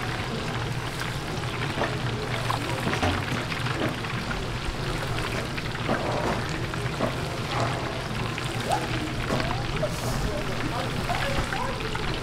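Hot oil sizzles and bubbles loudly.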